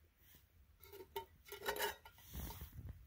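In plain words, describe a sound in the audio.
A metal lid clanks as it is pried off a pot.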